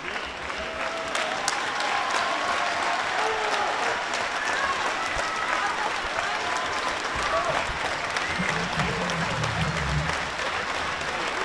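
Audience members cheer and shout from afar.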